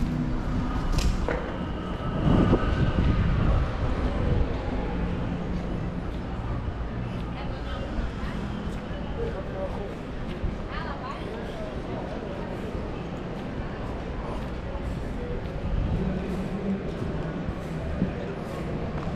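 A steady low hum of city traffic carries along an outdoor street.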